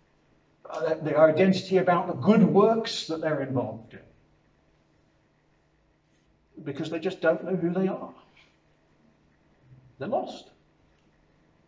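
A middle-aged man speaks calmly into a microphone, in phrases with pauses.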